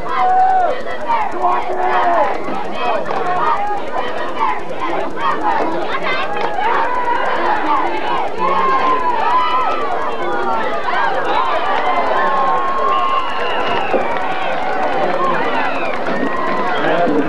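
Young players talk and call out close by.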